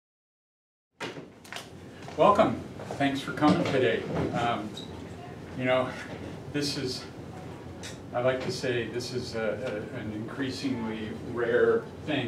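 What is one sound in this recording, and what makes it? A middle-aged man speaks calmly to an audience.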